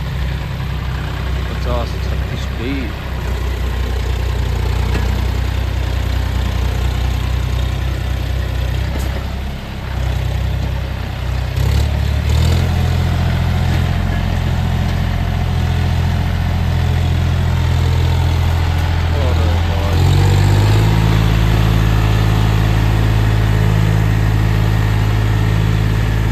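A diesel farm tractor labours under load, pulling a heavy trailer uphill.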